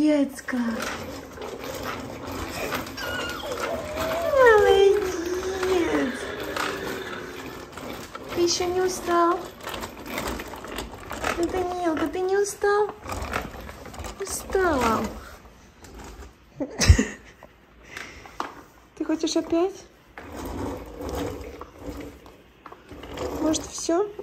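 Plastic wheels roll across a wooden floor.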